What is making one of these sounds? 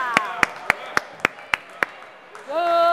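A basketball bounces on a wooden floor in an echoing hall.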